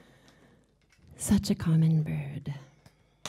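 A woman speaks close to a microphone.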